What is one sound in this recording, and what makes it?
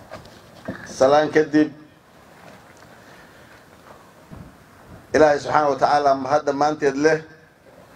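A middle-aged man speaks formally into a microphone over a loudspeaker, with pauses.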